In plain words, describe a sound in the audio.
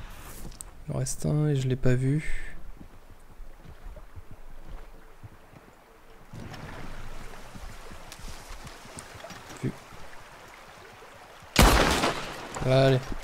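A man talks with animation through a microphone, close by.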